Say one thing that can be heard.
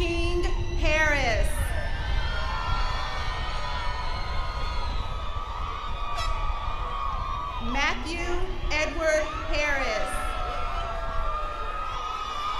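A crowd cheers and whistles outdoors.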